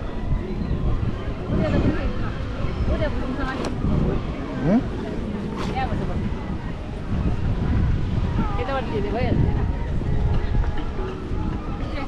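A crowd chatters nearby.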